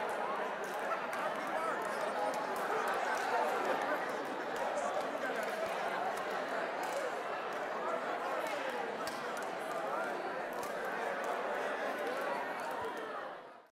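Hands slap together in high fives.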